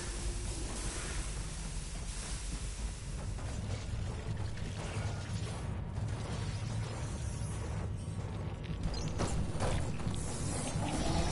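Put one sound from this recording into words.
Heavy metal footsteps clank steadily on a hard floor.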